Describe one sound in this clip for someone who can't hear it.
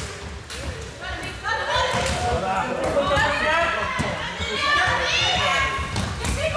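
Young players shout loudly in a large echoing hall.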